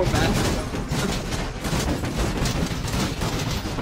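A car slams down with a heavy metal crash.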